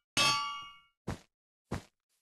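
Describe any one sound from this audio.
A stone block cracks and breaks with a short crunch.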